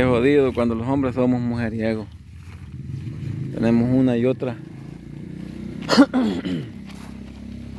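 An elderly man talks close by in a raised, lively voice.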